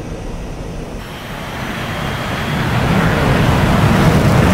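A jet engine roars loudly with afterburner, growing louder.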